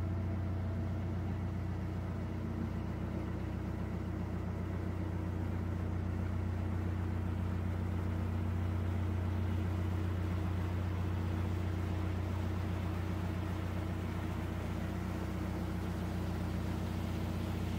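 Water gushes and splashes beside a moving boat.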